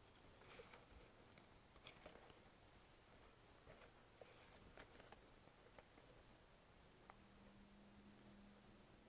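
Flower stems and leaves rustle softly as they are handled.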